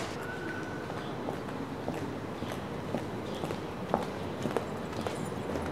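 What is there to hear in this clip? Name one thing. High heels click on pavement as a woman walks.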